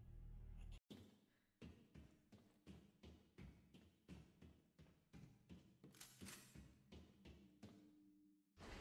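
Footsteps thud steadily across a hard floor.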